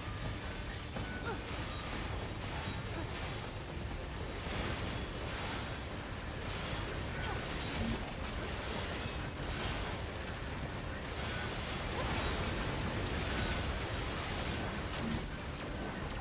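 Electricity crackles and sizzles.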